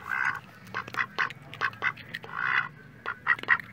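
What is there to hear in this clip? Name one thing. A duck quacks loudly up close.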